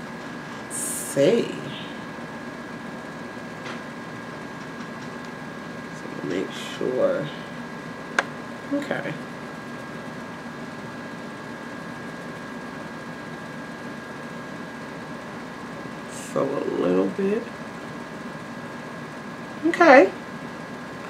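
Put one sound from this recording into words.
A young woman speaks briefly and calmly close to the microphone, with long pauses.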